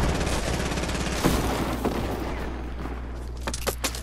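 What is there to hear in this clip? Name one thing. Wooden walls clatter as they are put up quickly.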